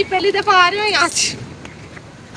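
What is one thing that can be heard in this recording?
A young woman speaks animatedly close by.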